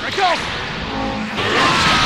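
An energy beam fires with a rising whoosh.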